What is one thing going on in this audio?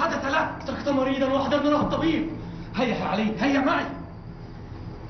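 A man speaks forcefully and close by.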